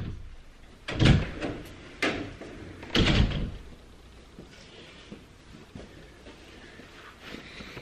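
Footsteps thud on the floor close by.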